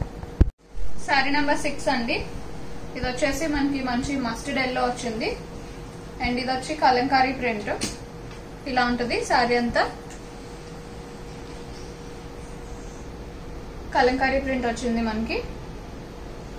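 A woman speaks calmly and close by, in short phrases with pauses.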